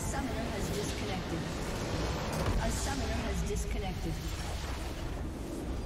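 A large structure in a video game explodes with a heavy rumbling blast.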